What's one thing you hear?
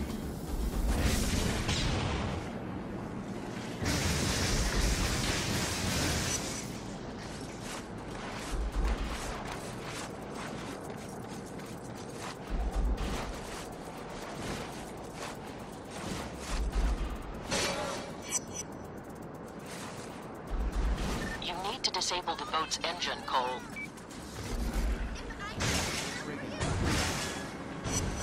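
Electric bolts crackle and zap in short bursts.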